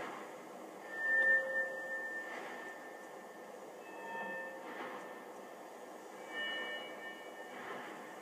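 Soft magical chimes ring out briefly, now and then.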